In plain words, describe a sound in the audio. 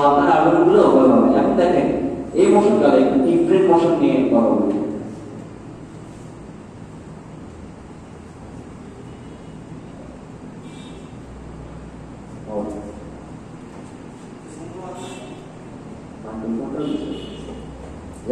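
A young man speaks through a microphone to a room, in a slightly echoing hall.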